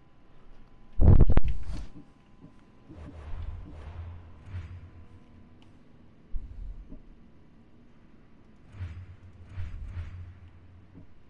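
Soft whooshes and clicks sound as game menu pages switch.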